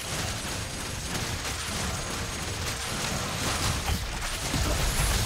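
Fantasy battle sound effects clash, crackle and burst in quick succession.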